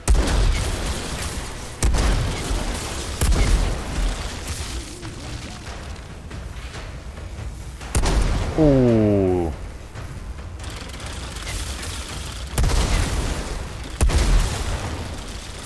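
Explosions rumble heavily.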